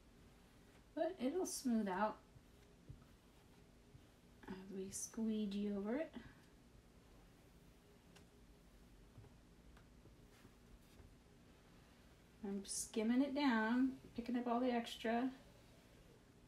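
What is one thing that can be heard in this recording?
A middle-aged woman speaks calmly and close by, in short bursts.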